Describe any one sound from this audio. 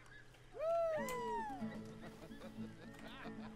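A guitar strums a slow tune.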